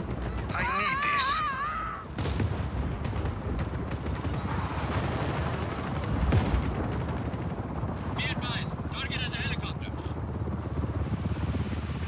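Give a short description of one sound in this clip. A helicopter's rotor whirs and thumps steadily.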